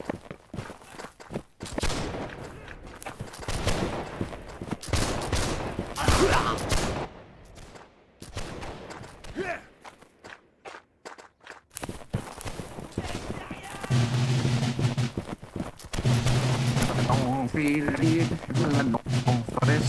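Muskets fire in bursts at a distance.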